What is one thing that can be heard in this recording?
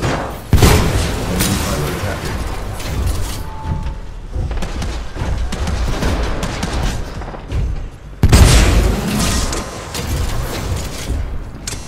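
Heavy energy weapon blasts boom and crackle.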